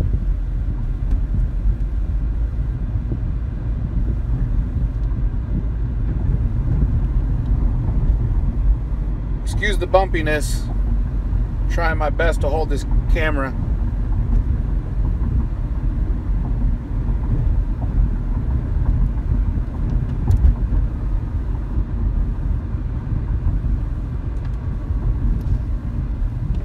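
A car drives along with a steady low road rumble.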